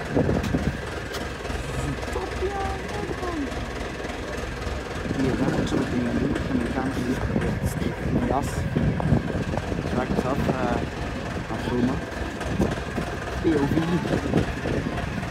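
A small loader's diesel engine rumbles steadily.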